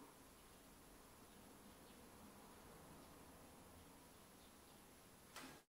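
A resonator guitar is played softly.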